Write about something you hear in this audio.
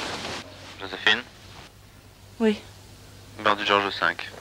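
A woman speaks softly and sleepily into a telephone.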